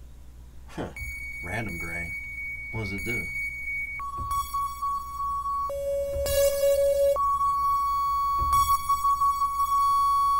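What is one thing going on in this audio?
A buzzing electronic tone plays and jumps between steady pitches.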